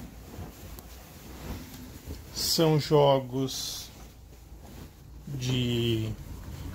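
Cloth rustles softly as laundry is pulled and stuffed by hand.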